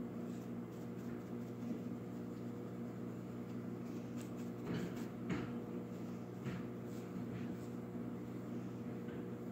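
A blade scrapes lightly against foam.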